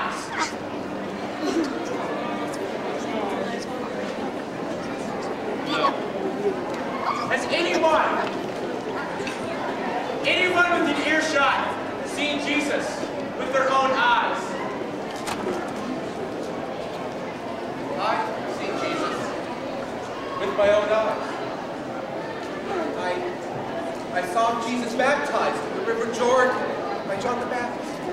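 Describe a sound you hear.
A young man speaks loudly and theatrically in a large echoing hall.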